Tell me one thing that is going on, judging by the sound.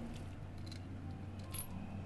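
Coins scrape on concrete.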